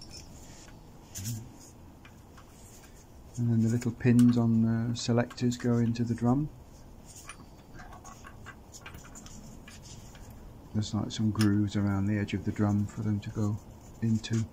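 Metal parts clink and click as they are handled.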